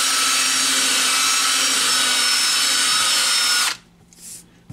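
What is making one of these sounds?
A power drill whirs loudly and steadily, then stops.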